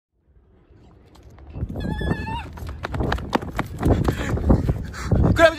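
Footsteps run quickly on concrete, coming closer.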